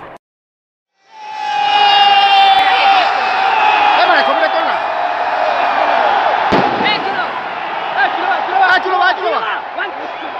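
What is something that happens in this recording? A group of young men sing and shout a chant together, close by.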